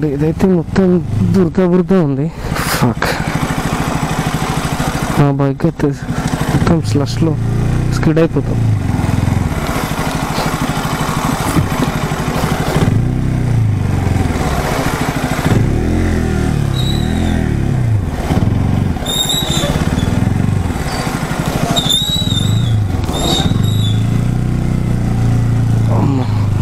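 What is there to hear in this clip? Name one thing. A motorcycle engine idles and revs at low speed.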